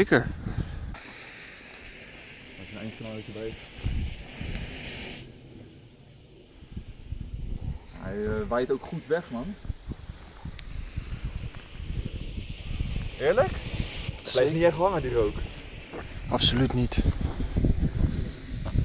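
A smoke flare hisses steadily as it burns.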